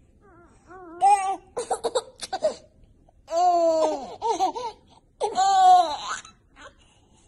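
A baby laughs loudly close by.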